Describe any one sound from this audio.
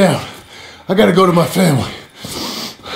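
A man speaks in a low, strained voice close by.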